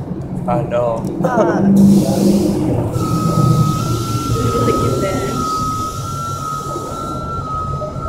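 A man talks nearby in a calm voice.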